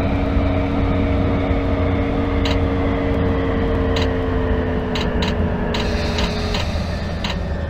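A train's motor whines, falling in pitch as it slows.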